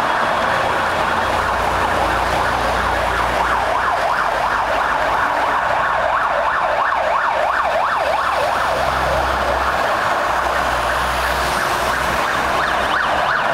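Heavy truck engines rumble as fire engines drive past.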